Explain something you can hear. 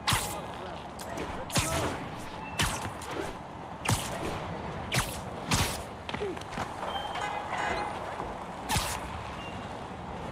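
Wind rushes past during fast swinging through the air.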